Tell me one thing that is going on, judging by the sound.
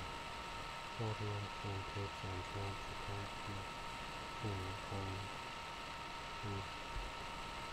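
A young man speaks quietly and briefly, close to a microphone.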